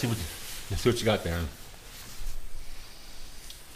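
Clothing rustles.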